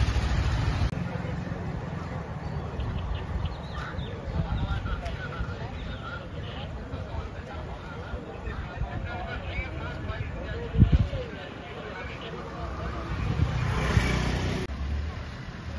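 A motorcycle engine hums as it rides past.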